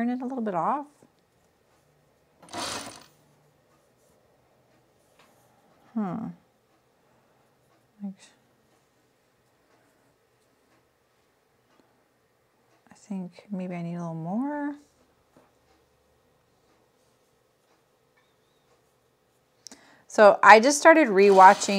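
An elderly woman speaks calmly into a microphone, in short phrases with pauses.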